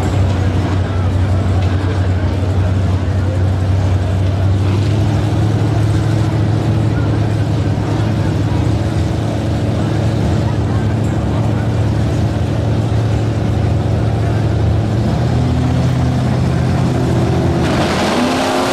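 Powerful car engines idle with a deep, loud rumble.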